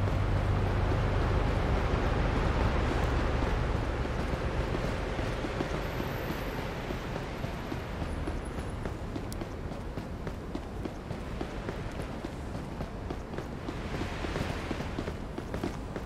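City traffic hums steadily in the background.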